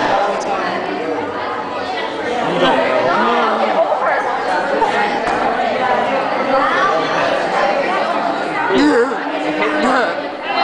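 A crowd of teenagers chatters.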